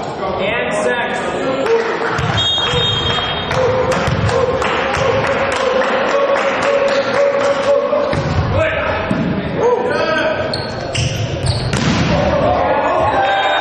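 A volleyball is struck hard by hand in an echoing sports hall.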